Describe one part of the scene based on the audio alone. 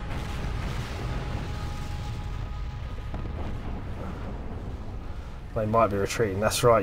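Explosions rumble and boom low and steady.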